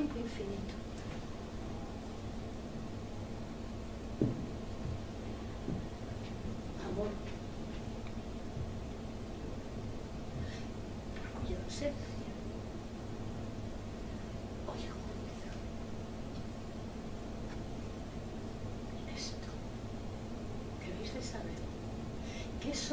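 A middle-aged woman speaks slowly, with long pauses, some distance away.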